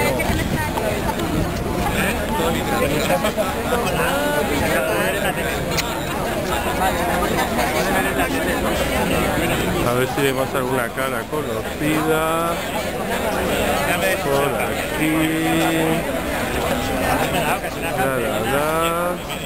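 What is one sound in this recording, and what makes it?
A large crowd of men and women talks and shouts outdoors.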